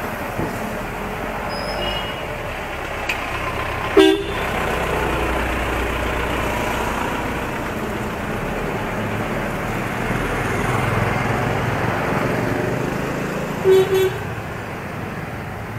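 Wind rushes steadily past while riding along a street.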